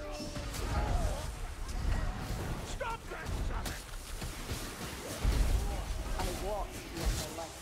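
Monsters snarl and screech in a crowd.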